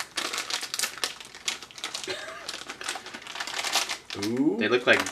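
Plastic wrappers crinkle and rustle as they are torn open.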